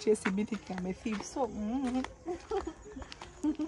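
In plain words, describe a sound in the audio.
A young woman speaks casually close by.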